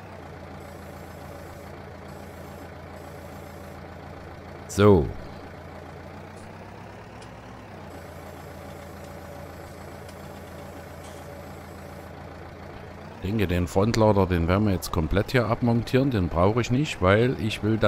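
A tractor engine idles with a steady low hum.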